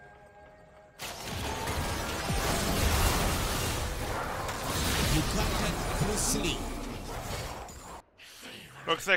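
Spells and blows clash in a noisy fight.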